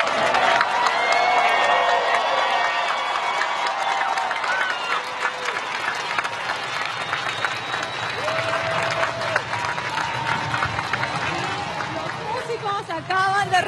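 A large orchestra plays outdoors.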